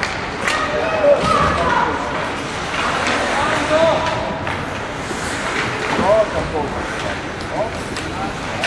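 Young players shout across an echoing rink.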